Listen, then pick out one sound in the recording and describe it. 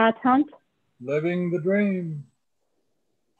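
An older man speaks over an online call.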